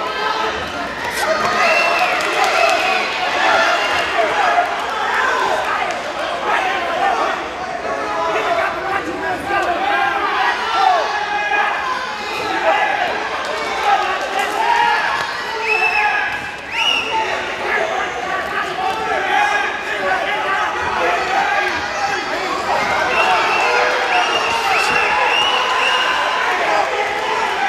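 A crowd in a large hall cheers and shouts throughout.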